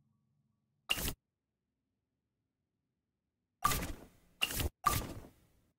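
Short game interface chimes and swooshes sound as puzzle pieces snap into place.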